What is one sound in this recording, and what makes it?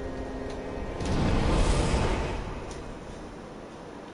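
A deep rushing whoosh swells and fades away.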